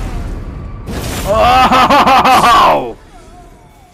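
A creature lets out a loud, wavering screech.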